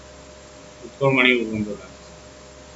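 A man speaks briefly through a microphone, close by.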